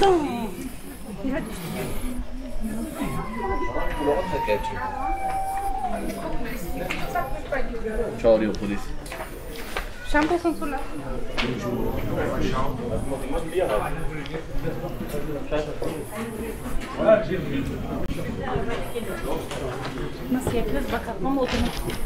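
Men and women chat nearby in a lively outdoor street.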